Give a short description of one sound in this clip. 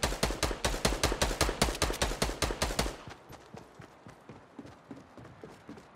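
Quick footsteps patter as a game character runs.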